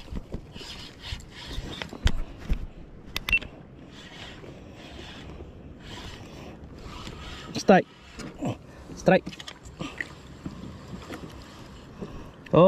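A fishing reel whirs and clicks as its line is wound in.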